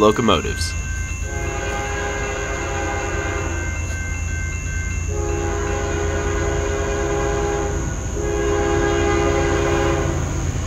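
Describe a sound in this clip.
A locomotive engine rumbles steadily as the train approaches.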